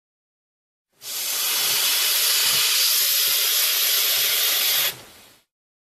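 A magical fire spell whooshes and hisses.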